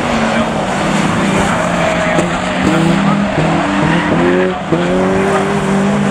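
Tyres skid and scrub on tarmac.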